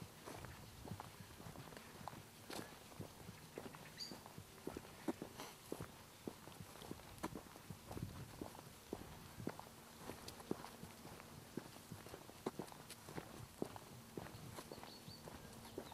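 Footsteps crunch on a dirt path at a steady walking pace.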